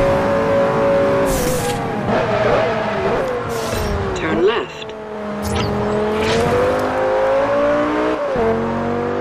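A sports car engine roars at high speed, dropping in pitch as the car slows and then rising again as it speeds up.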